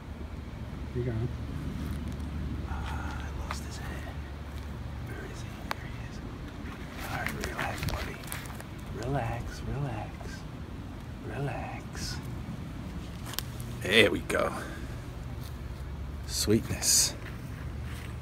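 A young man talks calmly close by.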